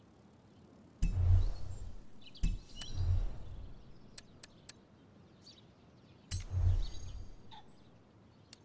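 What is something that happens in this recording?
Low whooshing thuds sweep as menus switch.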